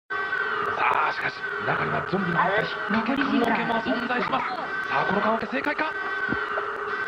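Young boys shout and exclaim excitedly.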